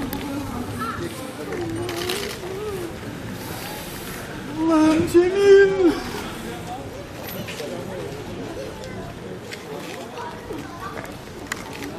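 Middle-aged men talk outdoors in agitated voices.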